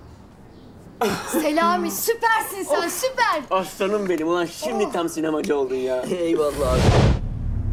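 A group of young men and women talk and laugh excitedly.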